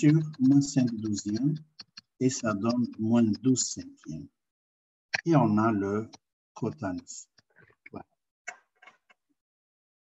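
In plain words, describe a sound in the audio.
An older man speaks calmly into a microphone over an online call.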